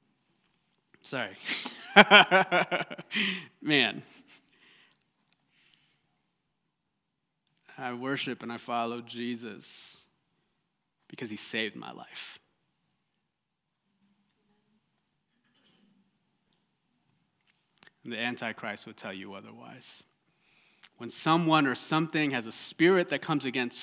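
A man speaks calmly into a microphone, in bursts with pauses.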